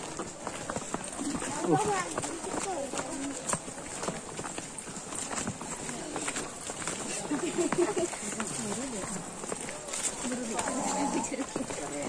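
Several men and women talk and call out nearby outdoors.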